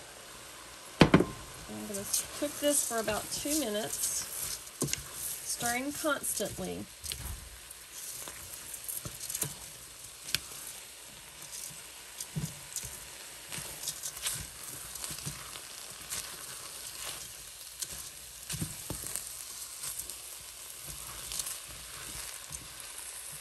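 A wooden spoon scrapes and stirs rice in a metal pot.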